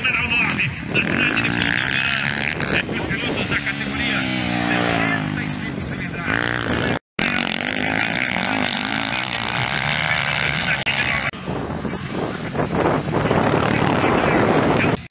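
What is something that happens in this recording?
Motorcycle engines rev loudly and whine up and down as dirt bikes race past.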